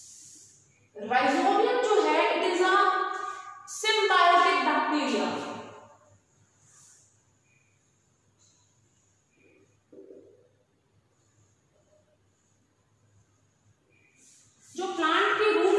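A woman speaks calmly and clearly, close by, as if teaching.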